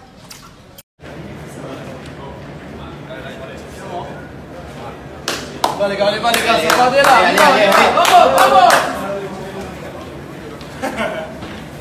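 Young men talk and shout with excitement close by.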